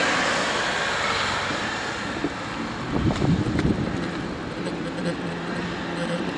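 Wind rushes over the microphone while riding outdoors.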